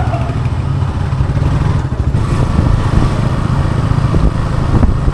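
A motorcycle engine rumbles steadily up close as it rides.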